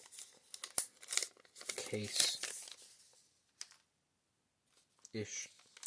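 A foil wrapper crinkles and tears open.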